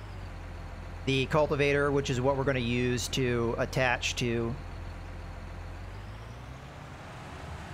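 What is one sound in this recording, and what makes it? A tractor engine idles with a low, steady rumble.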